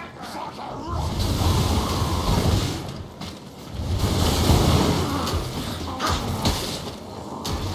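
A flamethrowing weapon roars in loud bursts.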